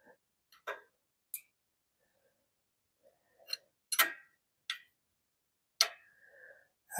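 Metal tools click and tap against an engine.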